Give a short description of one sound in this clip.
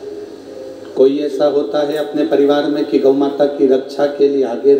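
A man speaks with animation into a microphone through a loudspeaker.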